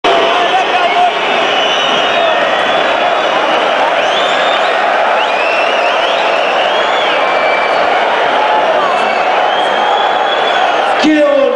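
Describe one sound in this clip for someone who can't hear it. Fans whistle sharply in a large crowd.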